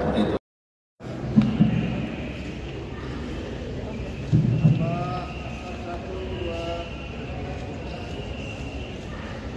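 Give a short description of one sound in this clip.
A group of men chatter and call out in a large echoing hall.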